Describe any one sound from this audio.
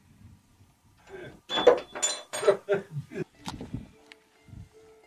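A heavy wooden door rattles and thumps as it opens.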